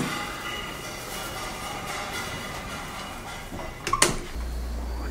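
A door latch clicks as a door swings shut.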